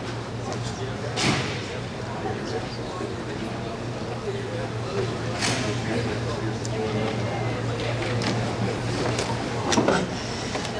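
A crowd murmurs in the background of a large room.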